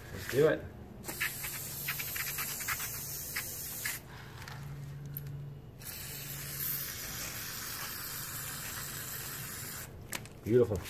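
An aerosol spray can hisses in bursts.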